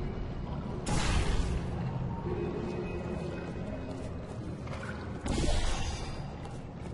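A portal gun fires with a sharp whooshing burst.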